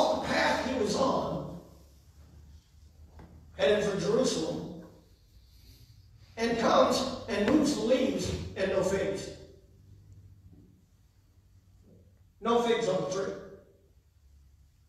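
A man preaches with emphasis into a microphone in a large echoing hall, pausing between phrases.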